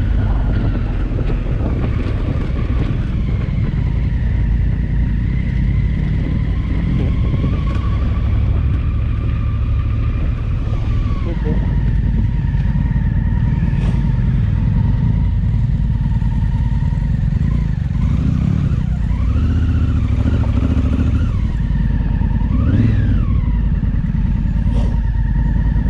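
A motorcycle engine hums steadily and rises and falls in pitch as it rides.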